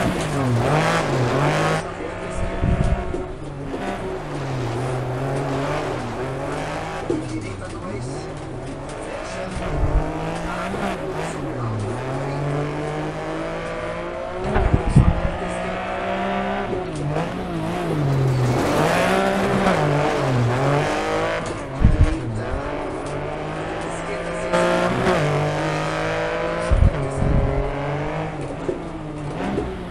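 A rally car engine revs hard, rising and falling as it shifts gears.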